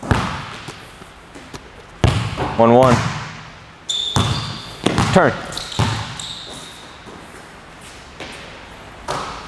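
A basketball bounces hard on a wooden floor, echoing in a large hall.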